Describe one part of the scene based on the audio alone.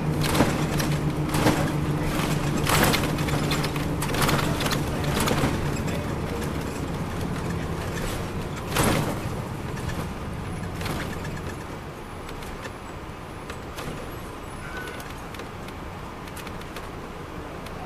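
The diesel engine of a coach bus drones, heard from inside while cruising.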